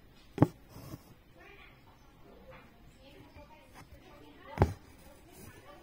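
Thread rasps softly as it is pulled through taut fabric.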